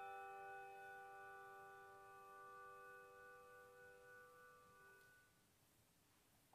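Handbells ring a held chord that slowly fades away.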